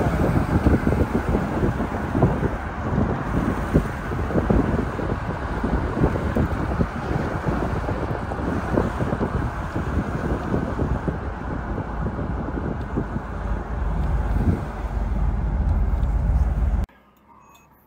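Wind roars and buffets loudly as a car drives along a road.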